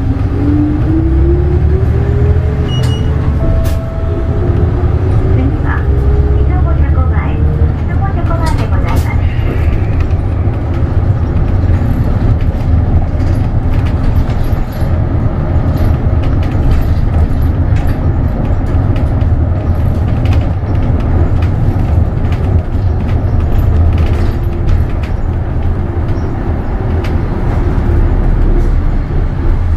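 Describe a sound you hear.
A bus engine hums and rumbles steadily while driving.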